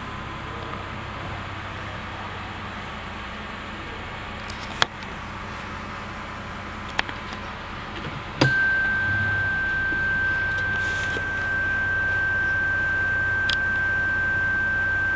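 An SUV's V6 engine idles quietly.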